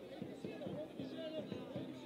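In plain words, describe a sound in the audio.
A young man shouts in protest nearby.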